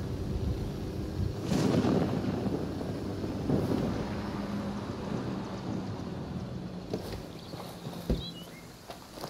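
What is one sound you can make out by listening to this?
A military helicopter's rotor thumps as it flies low.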